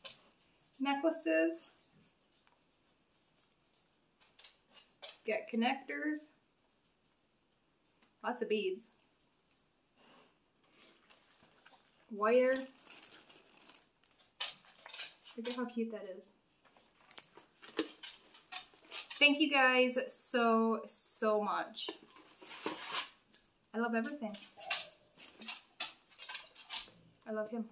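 A woman talks calmly and close by, with pauses.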